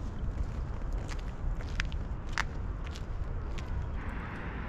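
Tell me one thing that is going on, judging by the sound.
Footsteps crunch on a gravel path.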